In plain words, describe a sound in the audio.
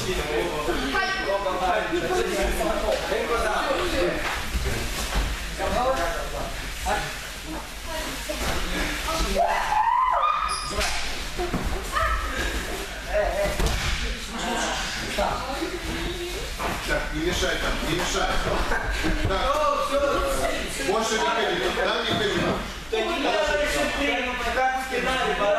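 Young people talk and call out throughout, in a large echoing hall.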